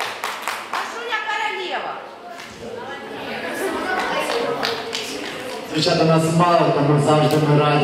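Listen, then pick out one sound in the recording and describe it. A young girl speaks softly close by.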